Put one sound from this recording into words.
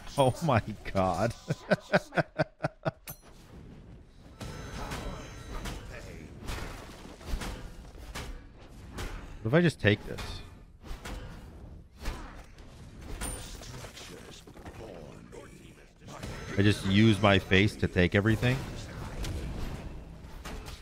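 Game combat effects clash, zap and thud.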